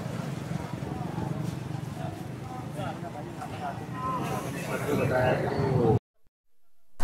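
A busy crowd chatters outdoors at a street market.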